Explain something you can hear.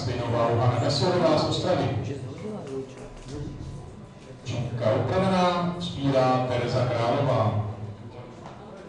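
A man talks loudly nearby in an echoing hall.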